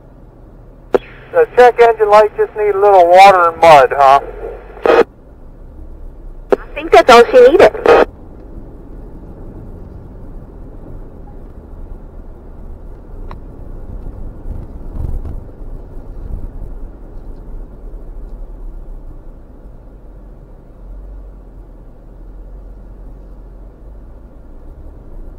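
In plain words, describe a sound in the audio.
A vehicle engine rumbles steadily at low revs.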